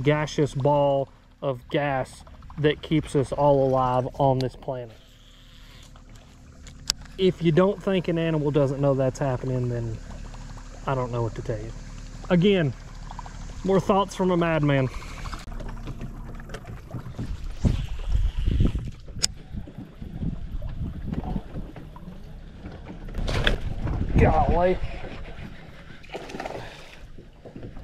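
A fishing reel whirs as the line is wound in.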